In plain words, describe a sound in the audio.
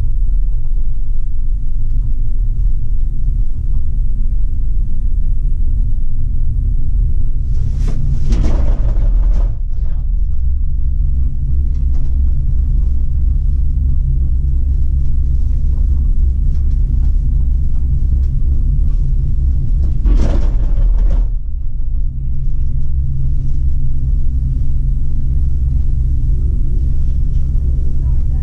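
A gondola cabin hums and rumbles steadily as it rides along its cable.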